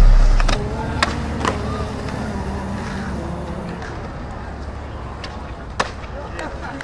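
A skateboard tail snaps and clacks on concrete.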